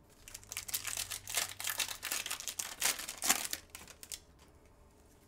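A foil card pack crinkles and tears open.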